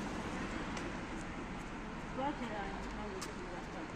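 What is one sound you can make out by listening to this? A car drives by slowly.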